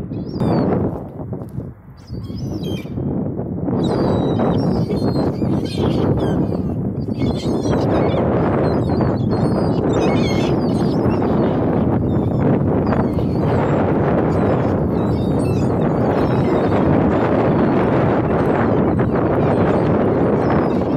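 Gulls cry and squawk loudly in a flock.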